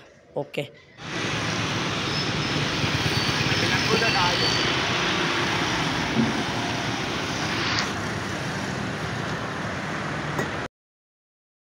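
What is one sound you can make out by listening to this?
A motorcycle engine hums while riding along a road.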